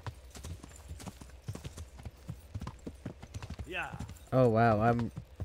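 Horse hooves clop steadily on a stone road.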